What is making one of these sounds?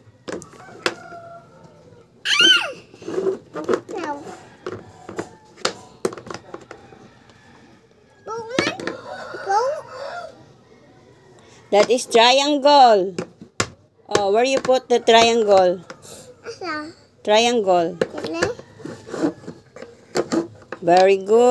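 Plastic toy pieces click and clatter against each other.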